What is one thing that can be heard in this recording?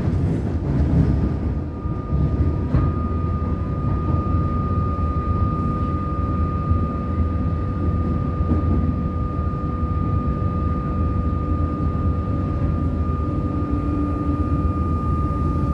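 A train's motor whines with a steady high hum.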